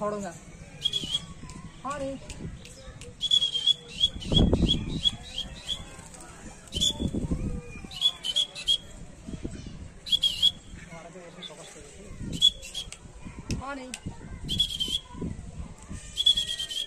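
A parrot squawks in sharp, repeated shrieks.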